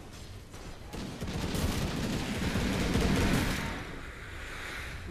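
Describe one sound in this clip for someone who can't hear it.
Weapons clash and spells burst loudly in a fight.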